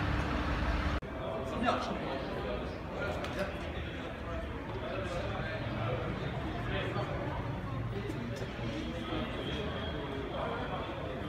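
Men talk quietly out in the street.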